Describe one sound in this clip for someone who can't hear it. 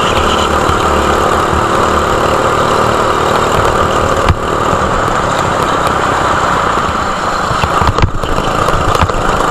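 A go-kart engine buzzes loudly close by.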